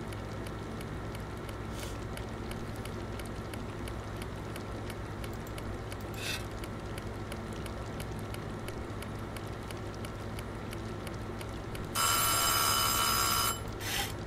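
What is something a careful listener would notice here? A wood fire crackles softly in an oven.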